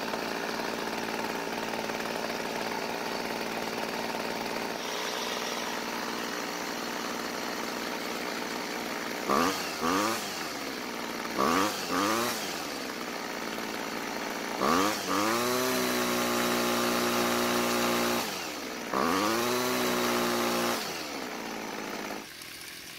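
A small two-stroke engine idles with a steady buzzing rattle.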